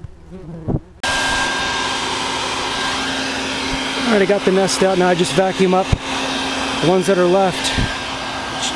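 A wet/dry shop vacuum runs, sucking air through its hose.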